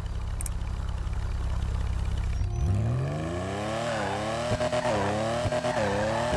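A car engine idles with a low rumble, then revs up and down repeatedly.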